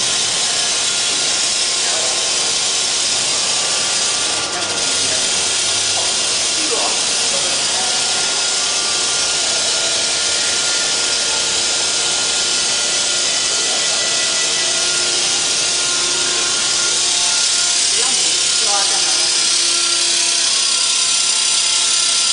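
Industrial machinery hums and whirs steadily.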